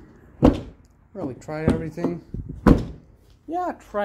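A car door handle clicks.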